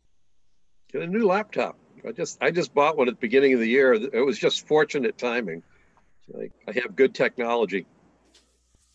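An elderly man answers calmly over an online call.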